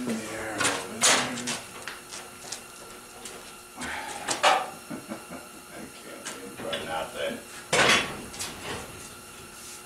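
Metal pieces clank and scrape nearby.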